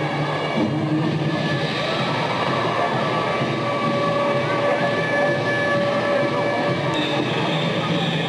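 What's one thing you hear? Young women cheer and chant together in a large echoing gym.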